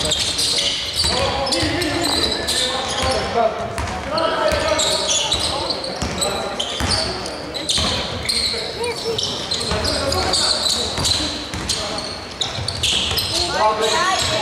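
Sneakers squeak sharply on a gym floor, echoing around a large hall.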